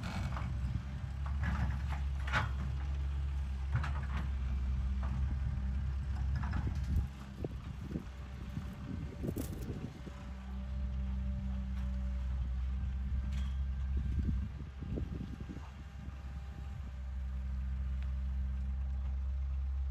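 A diesel excavator engine rumbles steadily and revs up under load.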